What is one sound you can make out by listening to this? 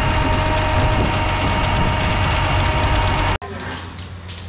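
A tractor engine runs loudly close by.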